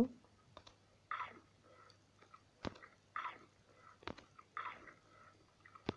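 Food is munched in quick bites.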